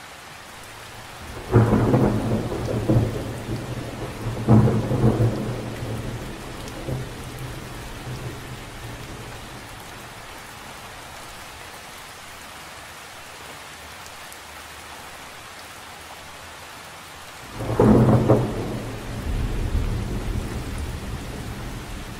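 Rain patters steadily on the surface of a lake.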